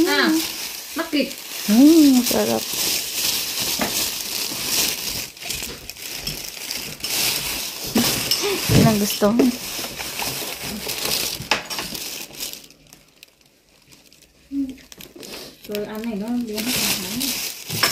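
Plastic bags rustle and crinkle up close.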